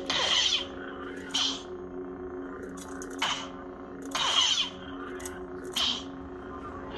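A toy lightsaber whooshes and crackles as it swings.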